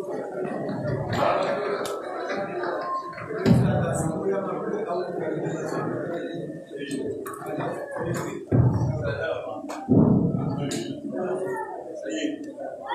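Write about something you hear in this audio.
Several men talk close by.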